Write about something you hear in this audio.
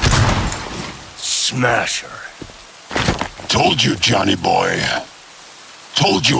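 A man speaks firmly, close by.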